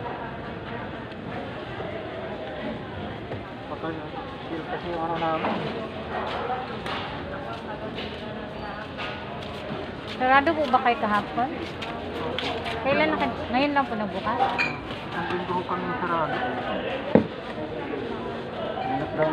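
A woman talks nearby with animation.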